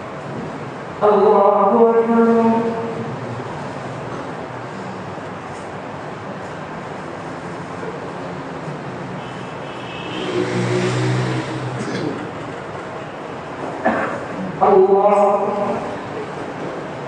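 A man chants loudly through a loudspeaker in an echoing hall.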